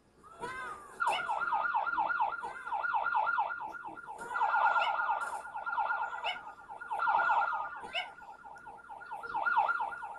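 A police siren yelps rapidly.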